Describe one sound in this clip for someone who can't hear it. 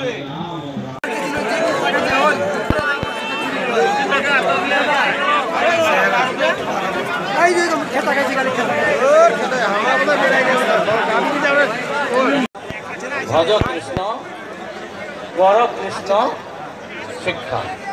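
A large crowd chatters loudly all around outdoors.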